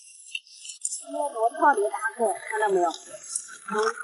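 Shells clatter against each other in a bucket.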